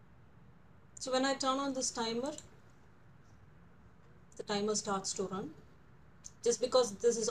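A young woman speaks calmly and clearly into a close microphone, in short phrases.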